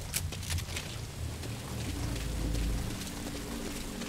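Footsteps run quickly across wet pavement.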